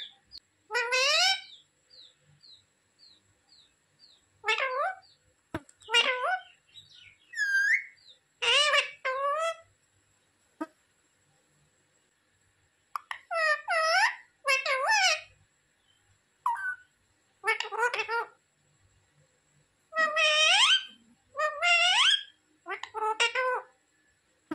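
A parrot squawks and chatters in short, loud bursts close by.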